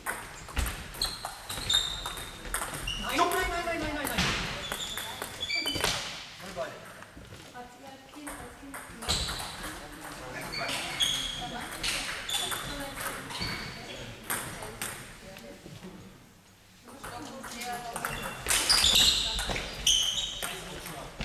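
Shoes squeak sharply on a hall floor.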